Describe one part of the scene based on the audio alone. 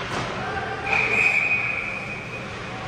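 A referee's whistle blows a short shrill blast.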